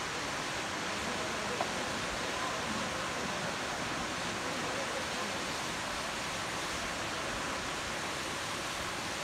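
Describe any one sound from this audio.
Water laps gently close by.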